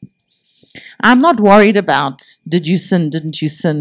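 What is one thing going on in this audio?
A middle-aged woman speaks with animation into a microphone through loudspeakers.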